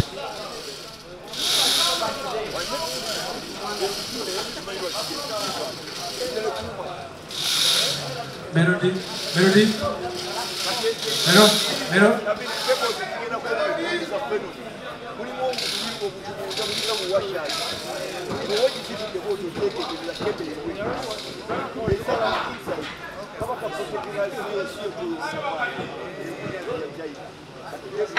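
A second man answers through a microphone.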